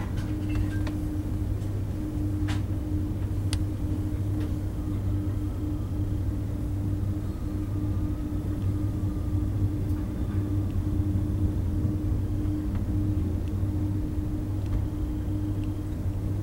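Train wheels click and clatter on the rails.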